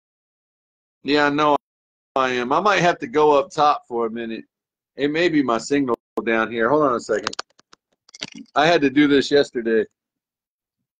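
A middle-aged man talks with animation close to a phone microphone.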